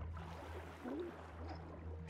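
Water bubbles gurgle and burble underwater.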